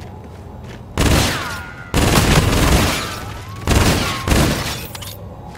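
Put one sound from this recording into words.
Video game gunfire blasts loudly in bursts.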